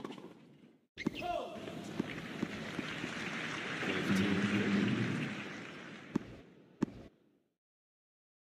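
A crowd applauds and cheers in a large arena.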